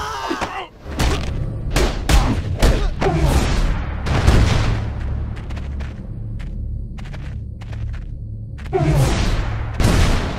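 Punches and kicks land with heavy thuds.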